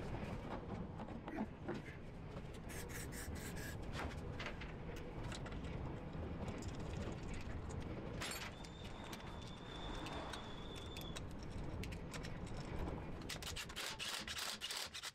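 Metal tools clink and click against a car wheel.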